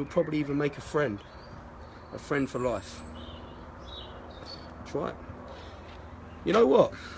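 A man speaks close up in a deep voice, with emphasis, in short bursts.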